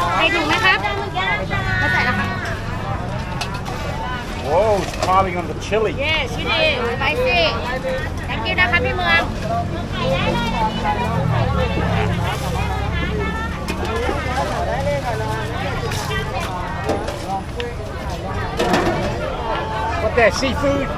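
People chatter in a busy crowd in the background.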